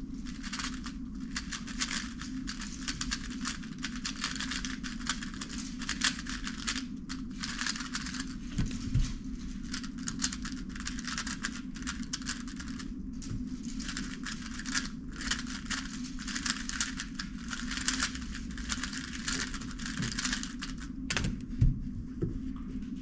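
Plastic puzzle cubes click and clatter rapidly as they are twisted.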